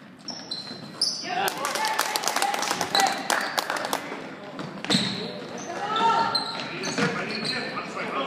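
Spectators cheer and shout in an echoing hall.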